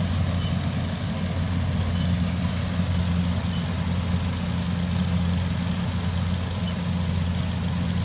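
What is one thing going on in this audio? A combine harvester's engine drones steadily at a distance, outdoors.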